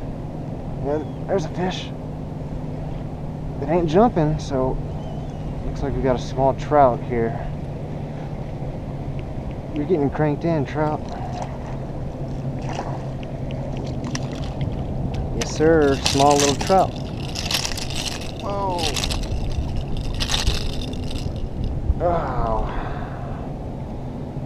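Small waves lap against a kayak.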